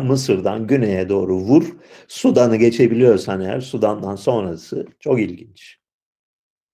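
An elderly man speaks with animation through an online call.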